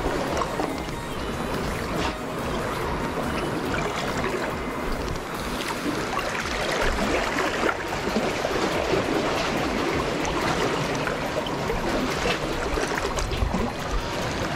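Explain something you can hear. Waves lap and splash against rocks.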